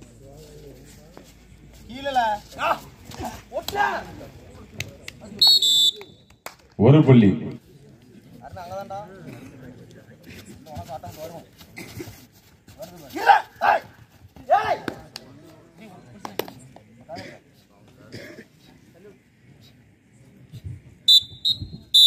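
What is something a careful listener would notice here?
A young man chants rapidly and repeatedly in a loud voice.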